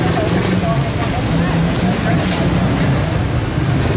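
A plastic bag rustles.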